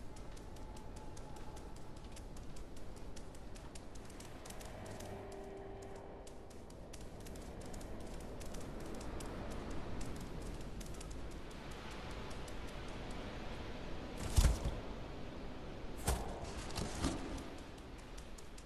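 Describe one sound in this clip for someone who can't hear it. A cat's paws patter softly on a hard floor.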